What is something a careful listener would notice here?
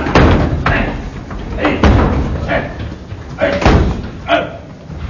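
Shoes stomp on a hard floor.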